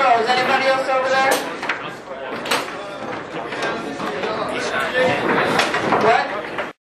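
A crowd of men chatters and calls out in a large echoing hall.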